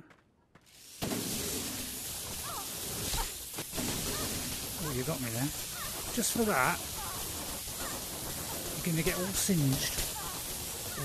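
Electric sparks crackle and buzz.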